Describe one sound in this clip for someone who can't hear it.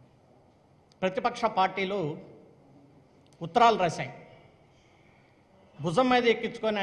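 A middle-aged man speaks emphatically into a microphone, in short bursts with pauses.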